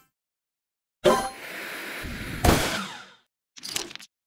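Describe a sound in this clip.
A cartoon bomb explodes with a loud burst.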